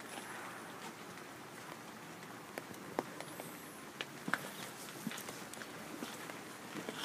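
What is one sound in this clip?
Rain patters steadily on leaves outdoors.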